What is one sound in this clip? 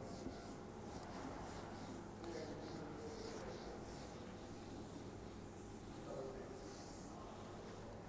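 A cloth eraser rubs softly across a whiteboard.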